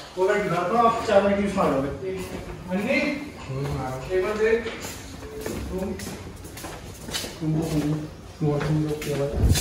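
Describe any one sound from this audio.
Footsteps tap on a tiled floor.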